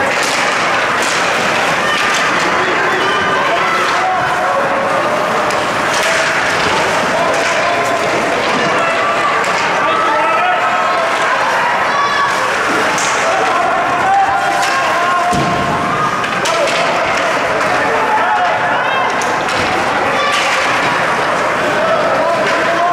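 A crowd of spectators chatters and cheers in a large echoing rink.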